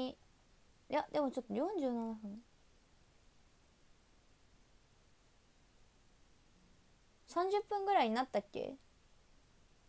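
A young woman speaks casually, close to the microphone.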